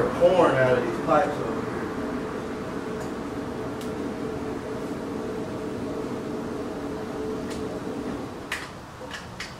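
A motorcycle engine starts up and idles roughly, then cuts out.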